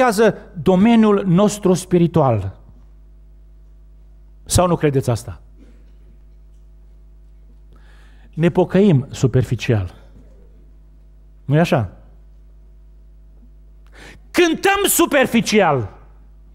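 An older man speaks with animation into a microphone, in bursts with pauses.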